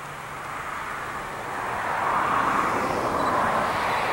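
A train rumbles closer along the track.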